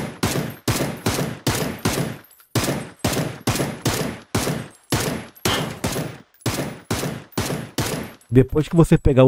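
Gunshots fire in steady single shots with a short ringing tail.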